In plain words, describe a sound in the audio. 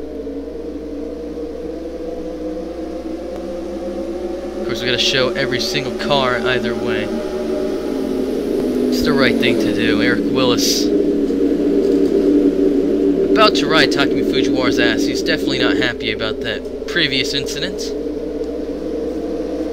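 Race car engines drone steadily at high revs.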